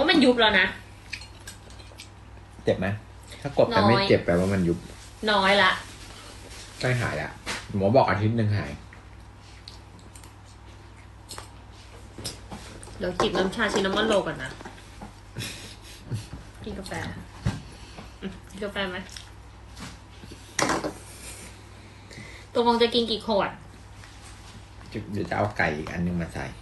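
A young woman talks close by, in short bursts.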